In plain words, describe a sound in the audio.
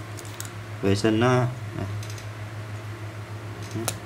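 A small cap clicks as it is pulled off a metal tube.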